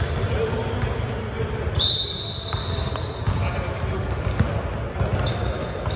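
A basketball bounces on a wooden court in a large echoing hall.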